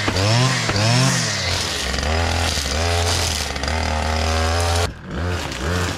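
A brush cutter engine runs steadily close by.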